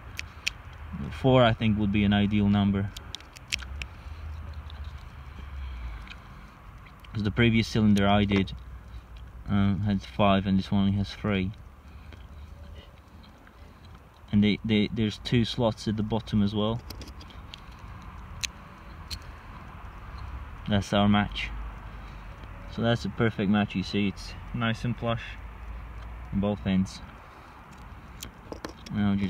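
Small metal lock parts click and tick as they are handled.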